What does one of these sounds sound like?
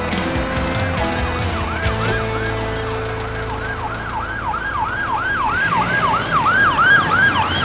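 A siren wails nearby, rising and falling quickly and growing louder.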